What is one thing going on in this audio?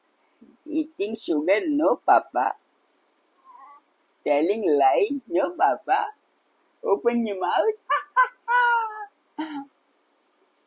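A man talks playfully and animatedly close by.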